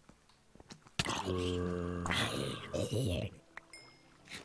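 A zombie groans loudly as it is struck.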